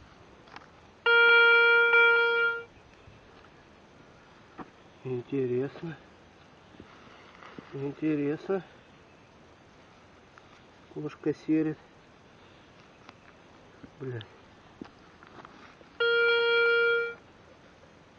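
A metal detector gives a steady high beep.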